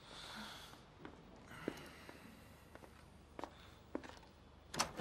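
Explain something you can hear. Footsteps thud on a floor.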